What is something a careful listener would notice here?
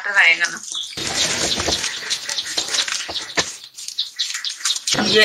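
A hand squishes and kneads a soft, wet mixture in a metal bowl.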